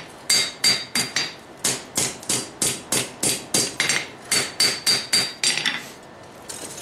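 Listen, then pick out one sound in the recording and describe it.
A hammer strikes hot metal on an anvil in quick, ringing blows.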